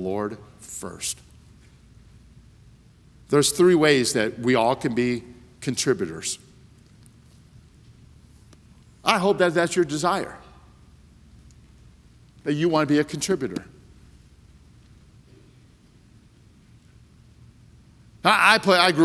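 A middle-aged man speaks with emphasis over a microphone in a large room, with long pauses.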